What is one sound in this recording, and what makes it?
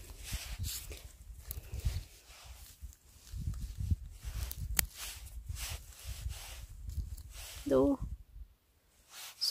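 Hands rustle through dry moss and pine needles.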